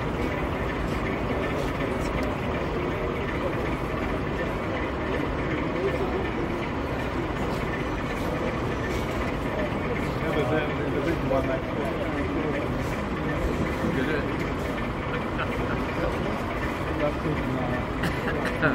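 A model locomotive hums softly as it rolls along the track.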